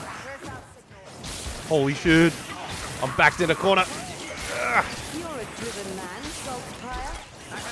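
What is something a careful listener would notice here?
Blades slash and thud against flesh in a fierce melee.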